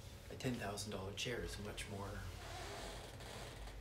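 An office chair creaks as a man sits down.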